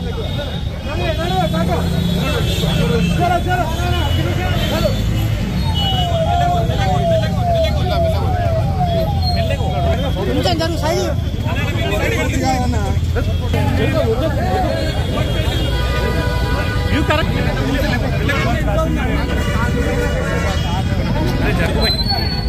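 A crowd of men talks and shouts close by.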